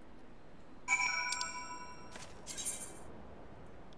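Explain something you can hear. A short jingle sounds.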